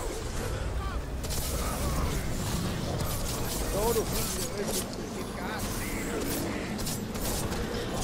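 A dragon-like beast growls and roars.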